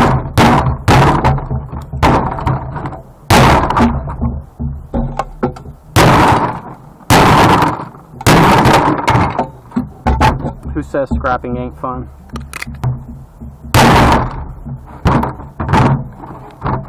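A hammer bangs hard on a metal part, with sharp ringing blows.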